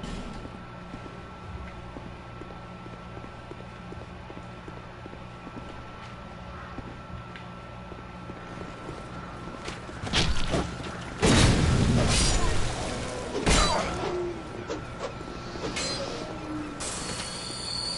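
Footsteps patter quickly on stone steps.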